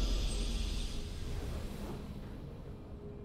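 A triumphant game victory fanfare sounds and fades out.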